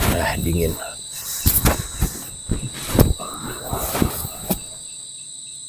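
A young man talks close by.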